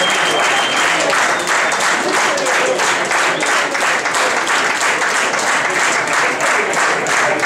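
A crowd claps steadily in rhythm.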